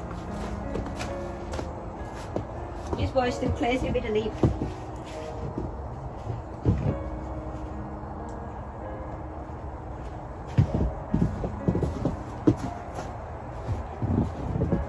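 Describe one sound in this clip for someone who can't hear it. Footsteps crunch through snow close by.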